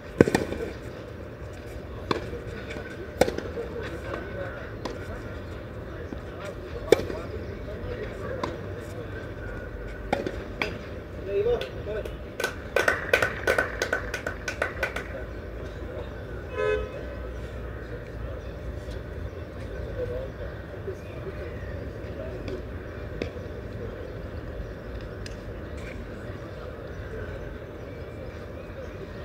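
Spectators chat quietly a short way off.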